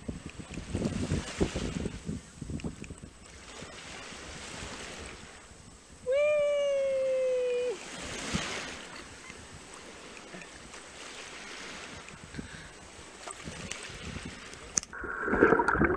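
Shallow waves wash up and foam over sand.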